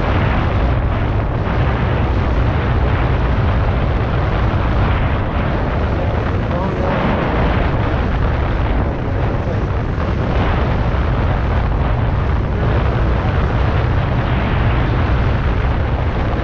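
Wind buffets the microphone of a rider moving at speed on an electric unicycle outdoors.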